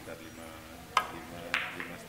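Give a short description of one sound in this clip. A cue stick strikes a ball with a sharp click.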